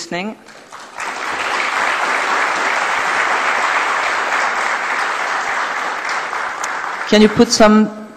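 An audience applauds loudly.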